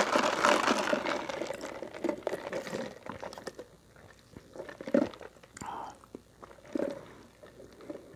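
A young woman sips a drink through a straw.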